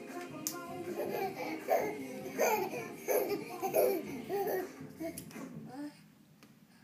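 A young child squeals and babbles excitedly nearby.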